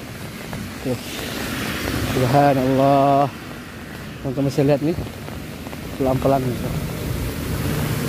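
A car drives through deep water, splashing loudly.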